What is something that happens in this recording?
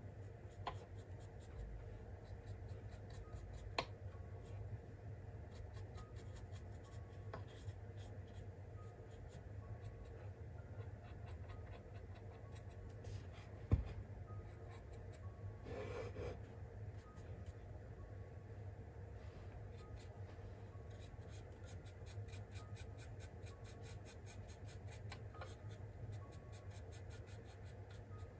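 A brush scratches lightly against a model as it dry-brushes paint.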